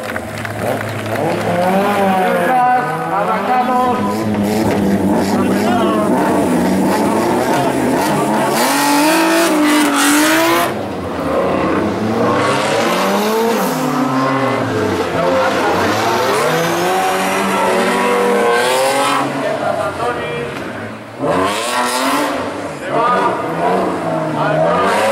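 A rally car's engine revs hard.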